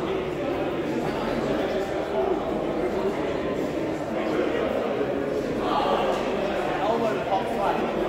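Many people talk at once in a large echoing hall.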